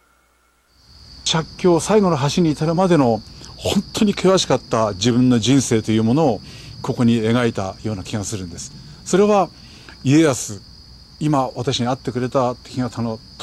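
A middle-aged man speaks calmly and thoughtfully, close by.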